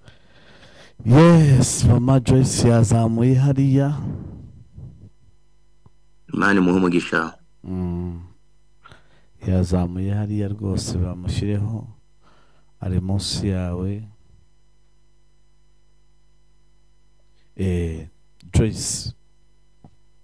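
A man speaks calmly into a microphone in bursts, heard as through an online call.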